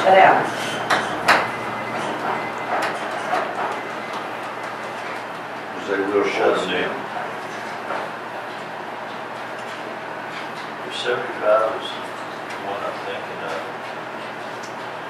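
A man speaks calmly at a distance in a room with some echo.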